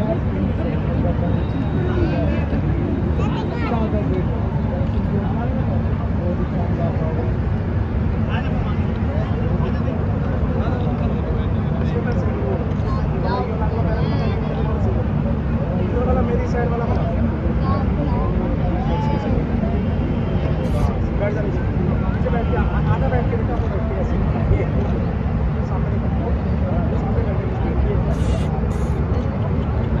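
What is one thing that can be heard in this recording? Men chatter and talk nearby in a small crowd outdoors.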